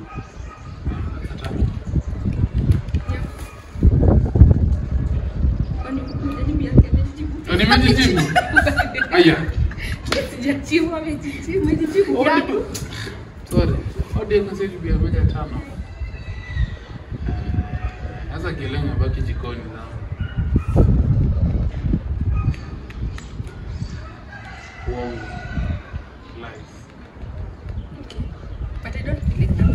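Young men and women talk together close by.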